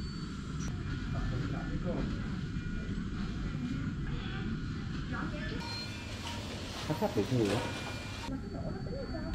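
Medical monitors beep softly and steadily.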